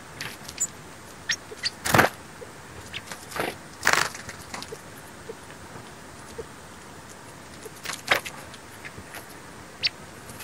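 Small birds peck and scratch at a snowy stump.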